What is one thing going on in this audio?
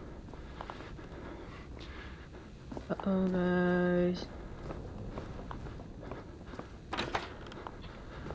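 A young woman speaks quietly into a microphone.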